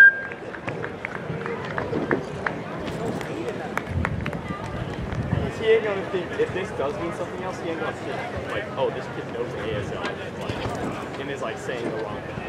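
A high jumper lands with a soft thud on a padded mat.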